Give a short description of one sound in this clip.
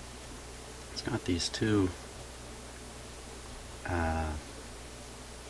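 A man speaks calmly close by, explaining.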